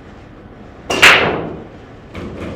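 A cue strikes a pool ball with a sharp crack.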